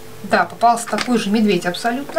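A foil-wrapped egg crinkles between fingers.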